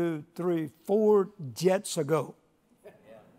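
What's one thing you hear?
An elderly man speaks with emphasis through a microphone in a large echoing hall.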